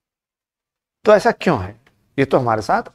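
A man speaks with animation into a microphone, lecturing.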